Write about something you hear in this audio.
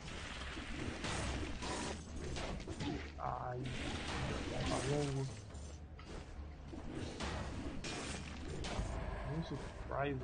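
Weapons slash rapidly in a video game fight.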